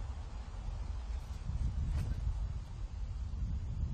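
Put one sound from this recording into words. A disc is thrown with a quick whoosh.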